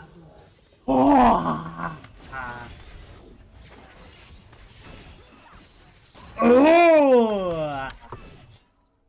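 A young man shouts excitedly into a headset microphone.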